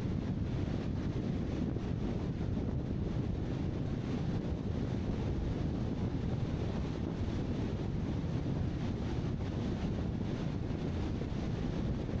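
A car drives steadily along a paved road, with a low rumble of tyres and wind.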